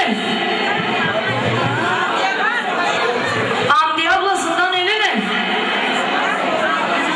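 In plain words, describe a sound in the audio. A crowd of women chatters nearby.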